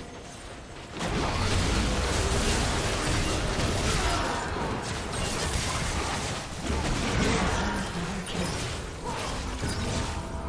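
Magic spells whoosh and crackle during a fast fight.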